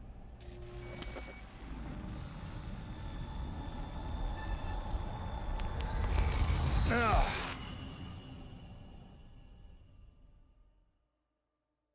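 A deep electronic rumble swells louder, then cuts off into silence.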